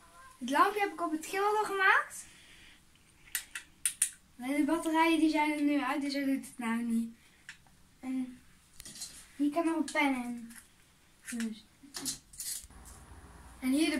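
Plastic parts click and rattle in a boy's hands.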